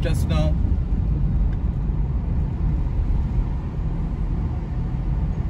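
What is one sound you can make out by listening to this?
A car's engine hums and its tyres roll steadily over the road.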